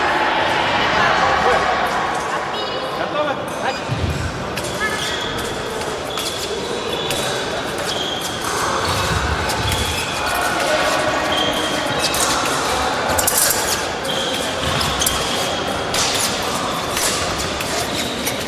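Fencers' shoes squeak and tap on a wooden floor in a large echoing hall.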